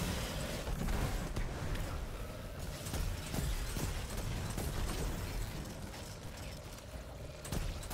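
Rapid gunfire bursts out in sharp cracks.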